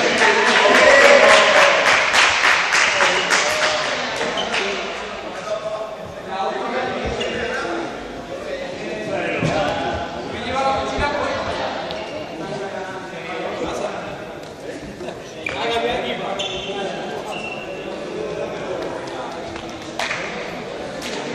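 Young men shout and talk loudly across a large echoing hall.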